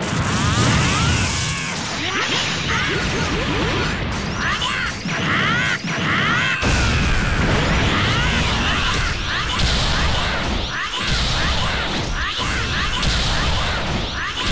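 Glowing power charges up with a crackling rush.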